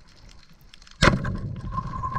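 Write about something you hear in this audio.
A speargun fires underwater with a sharp, loud snap.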